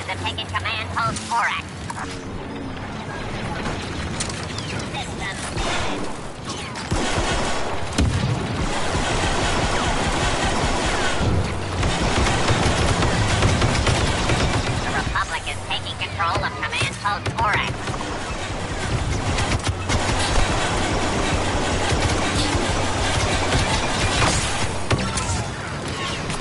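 Laser blasters fire in rapid, sharp bursts.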